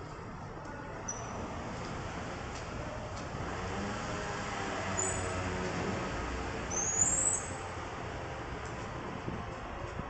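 A bicycle rolls past on a paved street.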